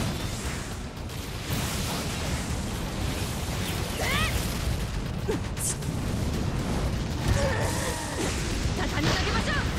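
Blades slash and clang in a fight.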